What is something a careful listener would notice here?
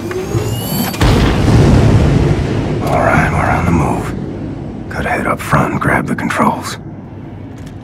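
A huge explosion roars and rumbles outside a metal cabin.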